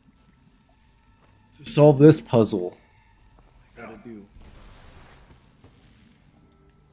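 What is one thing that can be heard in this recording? Electricity crackles and sizzles close by.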